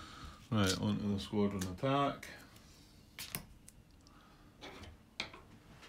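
A card is set down on a paper board with a soft tap.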